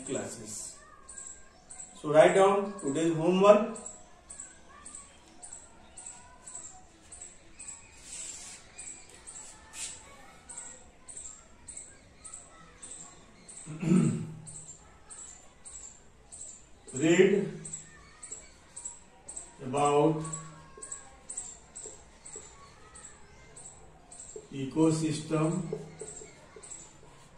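A man speaks calmly in short phrases close by.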